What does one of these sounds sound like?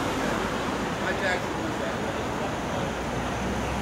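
Several people chatter outdoors at a distance.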